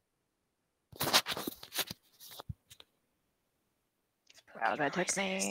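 A woman talks with animation over an online call.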